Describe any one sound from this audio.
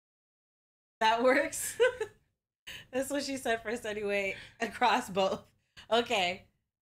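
A woman laughs.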